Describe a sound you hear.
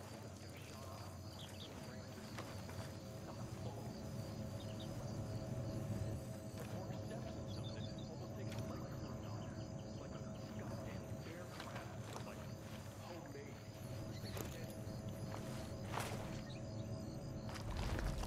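Footsteps crunch softly on sand and gravel.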